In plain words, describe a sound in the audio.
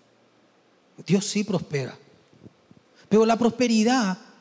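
A young man speaks with emphasis into a microphone.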